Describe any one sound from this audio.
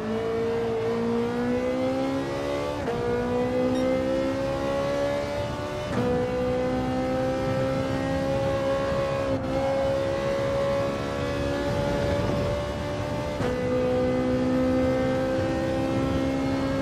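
A race car engine roars steadily, rising in pitch through each gear and dropping briefly at each gear change.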